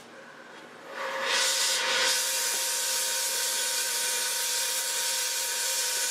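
A gas torch roars loudly and steadily.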